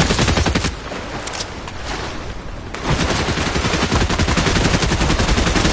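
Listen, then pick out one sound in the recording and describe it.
Water splashes as a figure swims.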